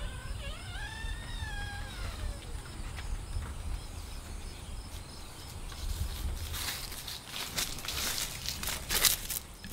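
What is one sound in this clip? Footsteps thud on wooden porch boards.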